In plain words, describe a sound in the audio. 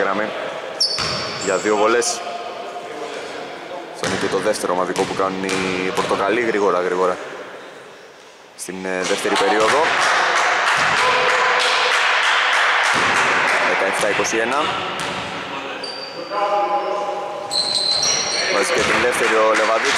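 Men shout to each other across an echoing gym.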